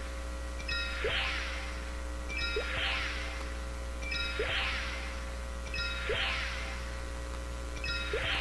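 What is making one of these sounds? A short electronic chime with a falling whoosh repeats at a steady pace.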